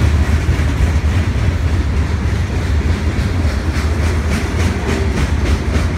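A freight train rumbles past close by with a heavy, steady roar.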